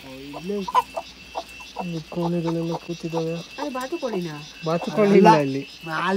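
Hens cluck close by.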